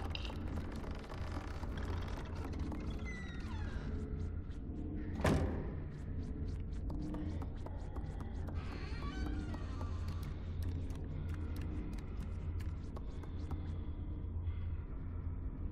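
Small, light footsteps patter on wooden floorboards and stairs.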